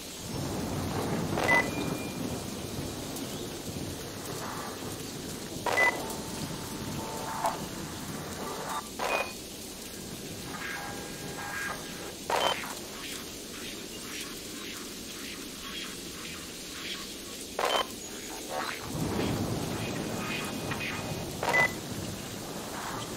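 Steady rain falls and patters all around.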